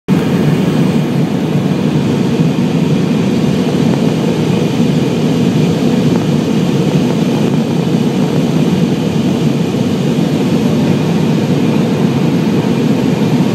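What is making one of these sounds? A jet plane's engines roar steadily inside the cabin.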